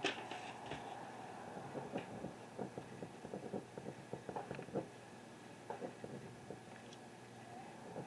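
Hammer blows knock on wood in the distance.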